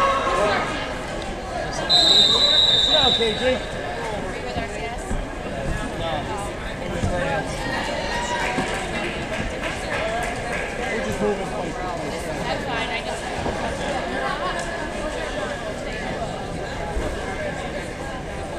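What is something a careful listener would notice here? A crowd of spectators talks and cheers in a large echoing gym.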